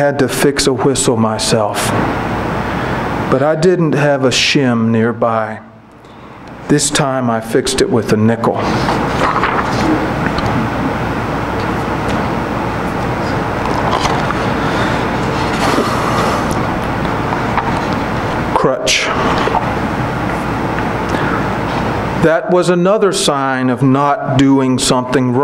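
A man reads aloud calmly into a microphone.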